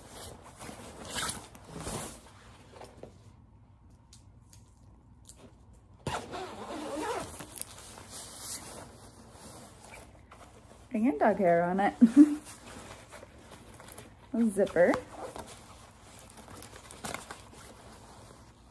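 Fabric rustles as a jacket is handled.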